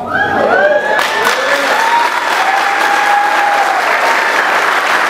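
People in a crowd cheer and whoop.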